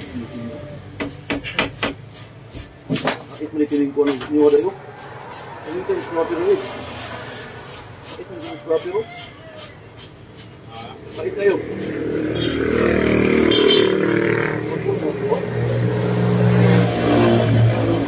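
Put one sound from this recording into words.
Rattan strips tap and click as a man weaves a chair seat.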